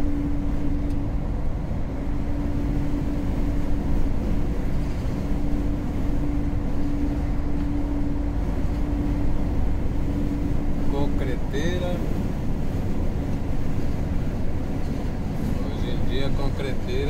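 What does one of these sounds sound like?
Tyres roll and hum along the road.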